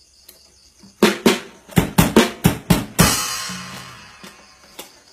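A man strums an acoustic guitar loudly in a few hard chords.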